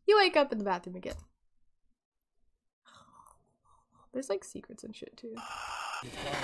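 A young woman speaks with animation into a headset microphone.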